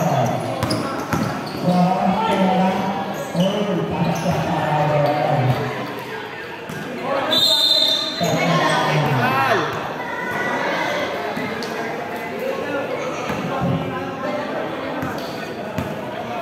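A basketball is dribbled on a hard court.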